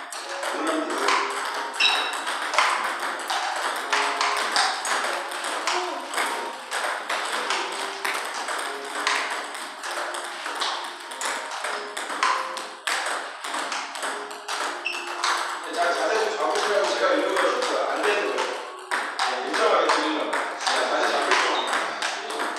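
Table tennis balls click rapidly off paddles and the table in an echoing room.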